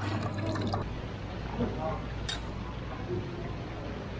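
A plate clinks down on a table.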